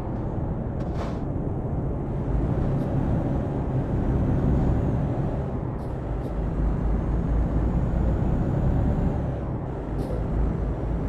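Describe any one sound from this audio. Tyres roll on the road with a steady low roar.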